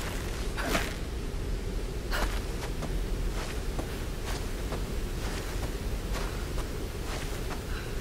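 A rope creaks and whirs as a person slides down it.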